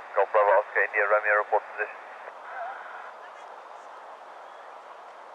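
A small propeller plane's engines hum steadily as it taxis.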